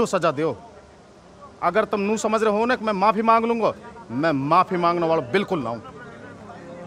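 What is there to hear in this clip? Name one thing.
A middle-aged man speaks forcefully and close by.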